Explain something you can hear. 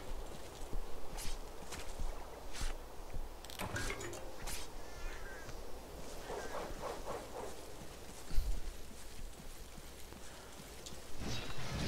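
Footsteps rustle through tall grass.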